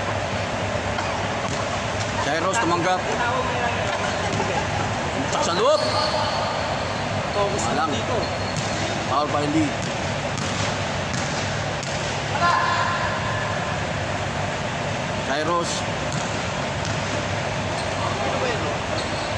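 Children shout and call out to each other in a large echoing hall.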